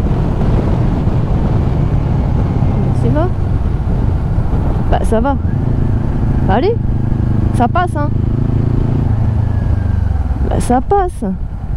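A motorcycle engine rumbles steadily at cruising speed.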